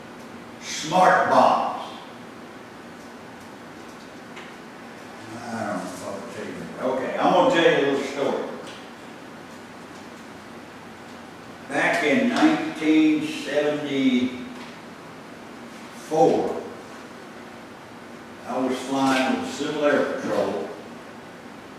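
A middle-aged man speaks calmly and loudly in bursts, with pauses in between.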